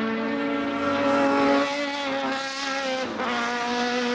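A race car engine roars loudly as the car speeds past and shifts gears.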